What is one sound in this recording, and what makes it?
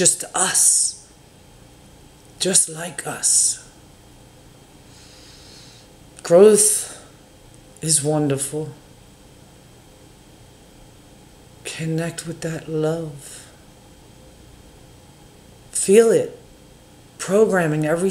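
An older woman speaks slowly and calmly into a nearby microphone, with long pauses.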